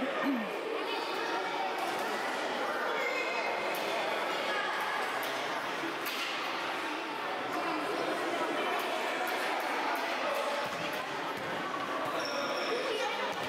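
A football is kicked and bounces on a hard court floor.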